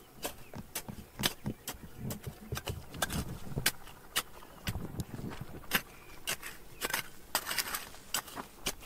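A small pick scrapes and chips at dry, stony soil.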